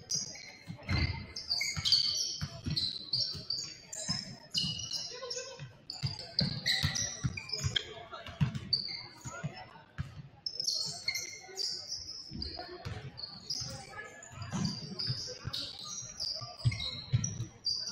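A basketball bounces with dull thuds as players dribble.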